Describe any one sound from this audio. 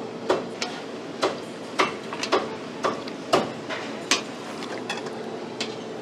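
Metal tongs clink against metal pots.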